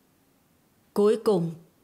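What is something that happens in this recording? An older woman speaks calmly, close by.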